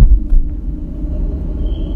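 A child's footsteps echo softly in a large hall.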